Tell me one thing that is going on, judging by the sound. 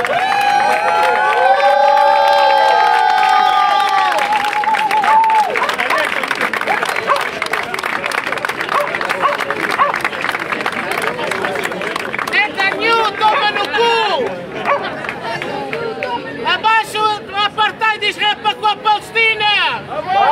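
A crowd of men and women chants loudly outdoors.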